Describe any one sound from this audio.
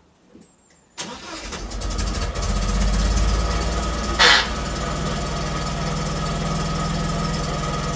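The four-cylinder engine of an MGB GT starts and idles.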